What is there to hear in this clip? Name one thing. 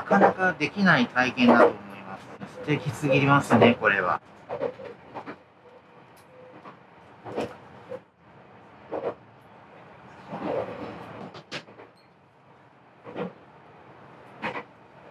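A train rolls steadily along the rails.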